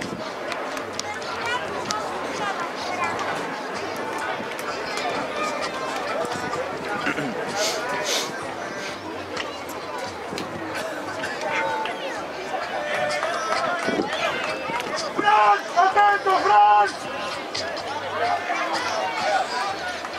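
A crowd of spectators chatters and calls out steadily outdoors.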